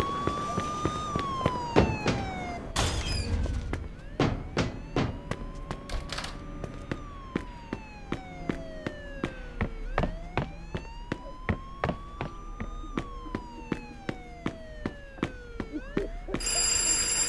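Footsteps clatter steadily on hard floors and stairs.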